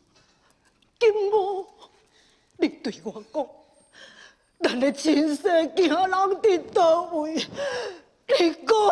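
A young woman sings in a high operatic voice.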